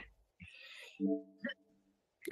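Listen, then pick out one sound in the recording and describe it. A short electronic menu chime sounds.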